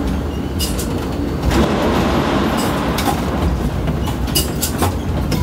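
Crane machinery rumbles steadily.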